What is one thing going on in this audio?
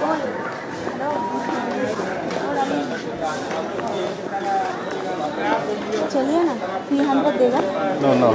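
A crowd of men and women talk and shout over one another close by.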